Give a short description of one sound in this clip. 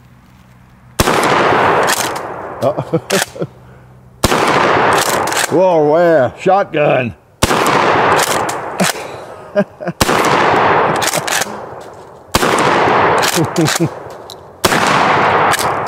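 A shotgun fires loud blasts that echo through open woods.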